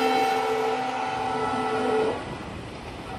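A train horn blares.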